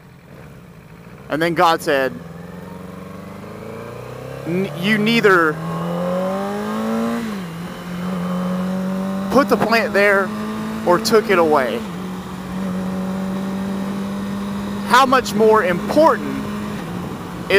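A motorcycle engine hums close by, rising in pitch as it speeds up.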